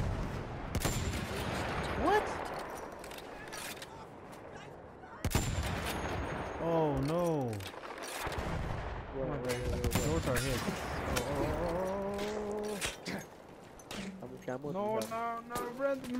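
Rifle shots crack sharply, one at a time.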